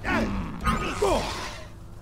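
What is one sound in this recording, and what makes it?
Lightsabers clash with a sharp crackle.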